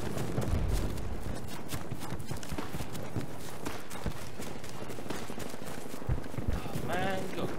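Explosions boom far off.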